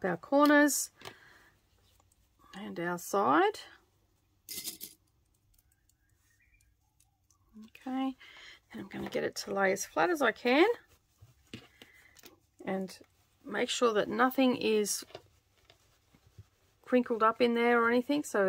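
Fabric rustles softly as it is handled and folded.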